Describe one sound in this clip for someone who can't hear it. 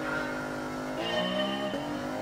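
A car engine revs up sharply through the gears.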